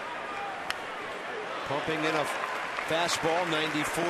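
A baseball pops into a catcher's mitt.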